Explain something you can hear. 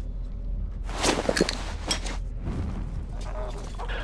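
A lighter clicks and sparks alight.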